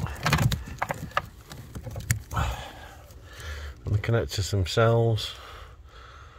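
Plastic parts rattle and click as they are handled close by.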